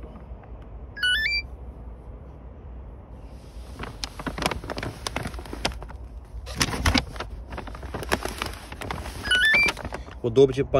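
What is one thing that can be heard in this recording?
A phone beeps with a quick rising chime.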